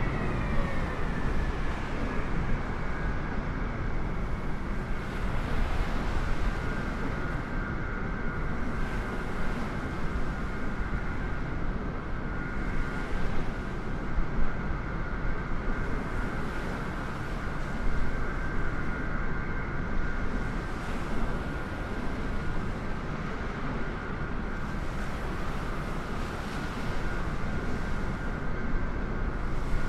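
A Boeing 747's jet engines roar and whine as the airliner rolls along a runway.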